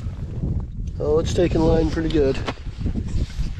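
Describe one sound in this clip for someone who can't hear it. A young man speaks casually close to the microphone.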